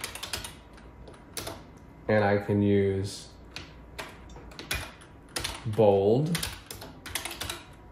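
Keys clatter quickly on an electronic typewriter.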